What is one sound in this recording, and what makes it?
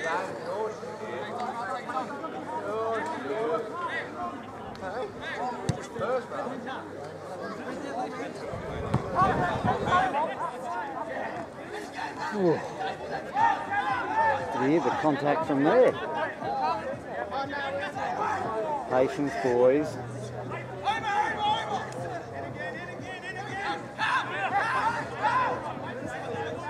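Men shout and call out to one another across an open field.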